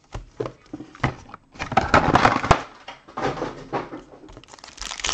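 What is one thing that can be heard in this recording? Foil card packs rustle and crinkle.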